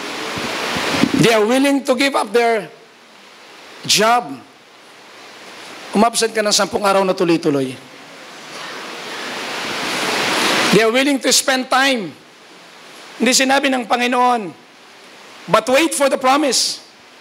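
A middle-aged man speaks with animation through a microphone and loudspeakers, in short bursts with pauses.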